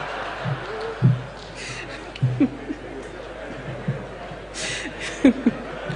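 A woman laughs softly into a microphone.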